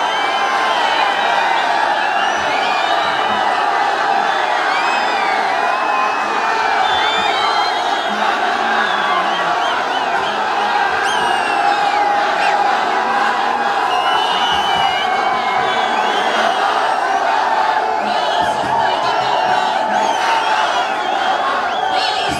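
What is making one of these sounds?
A large crowd chants and cheers loudly outdoors.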